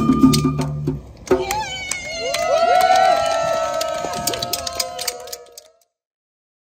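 A campfire crackles and pops.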